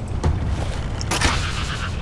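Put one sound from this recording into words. A crossbow fires a bolt with a sharp snap.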